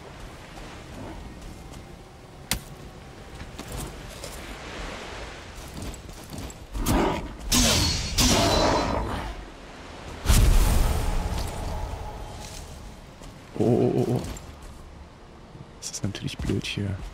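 A man talks into a headset microphone close by.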